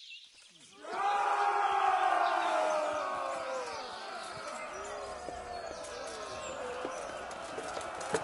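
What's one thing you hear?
Several men shout a battle cry together.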